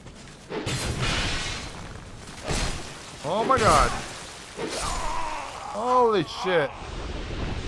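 Heavy weapon blows whoosh and thud in a game fight.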